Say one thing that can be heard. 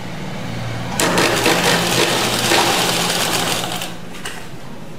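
A sewing machine stitches through fabric.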